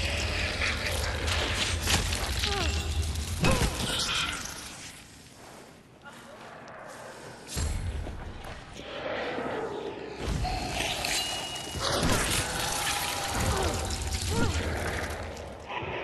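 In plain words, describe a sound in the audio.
A swarm of insects skitters and rustles.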